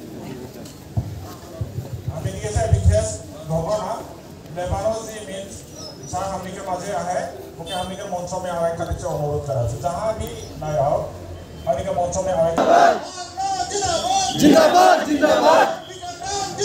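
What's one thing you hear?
Several men talk and call out close by, outdoors.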